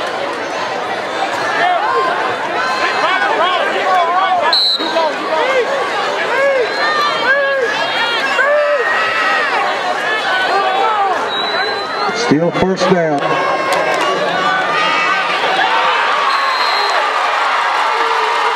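A large crowd cheers and shouts in an open stadium.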